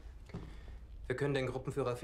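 A young man speaks firmly nearby.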